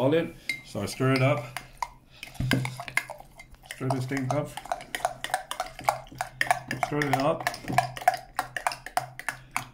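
A metal spoon scrapes and clinks against a glass.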